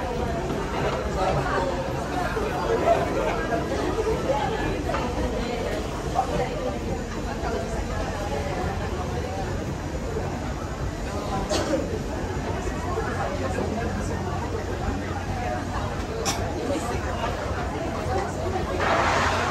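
Footsteps shuffle along a walkway.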